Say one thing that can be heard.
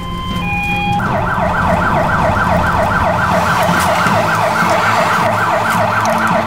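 A fire engine's siren wails rapidly up and down, close by.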